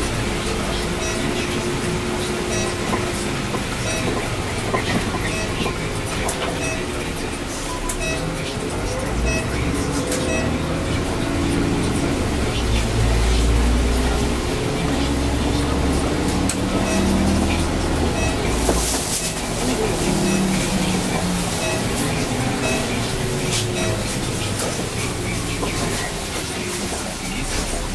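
A bus rattles and creaks over the road.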